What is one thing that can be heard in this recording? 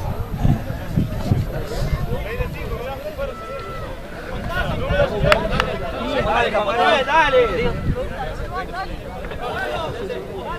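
Young men shout and call to each other outdoors, some way off.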